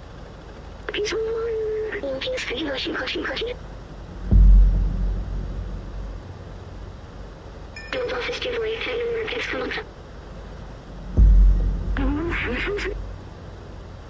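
A small robot chatters in quick electronic beeps and chirps.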